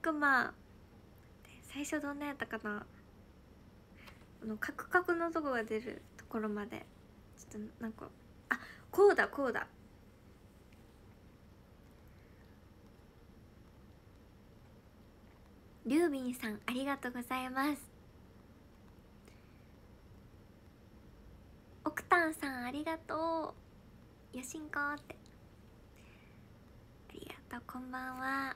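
A young woman talks with animation close to a microphone, in bursts with pauses.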